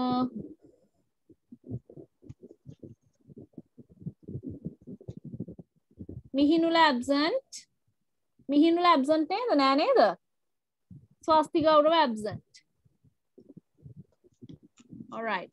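A child speaks in a clear, sing-song voice over an online call.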